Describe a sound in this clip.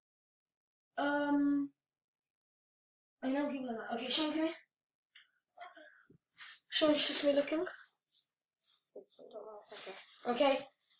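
A young child speaks and calls out loudly nearby.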